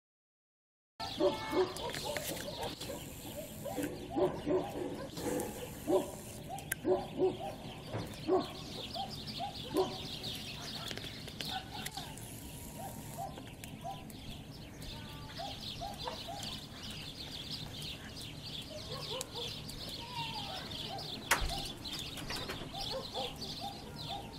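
Small birds chirp and twitter nearby, outdoors.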